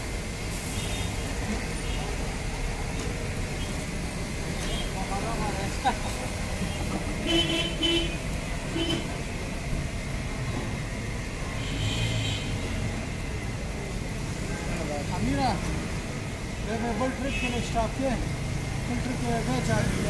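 Hot oil sizzles steadily in a large pan.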